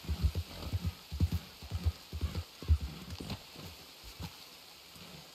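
Horse hooves thud heavily on soft ground.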